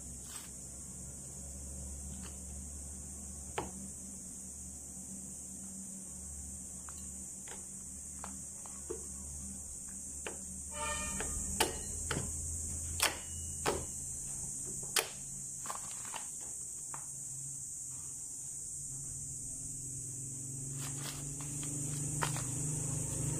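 Metal parts click and clack sharply, close by.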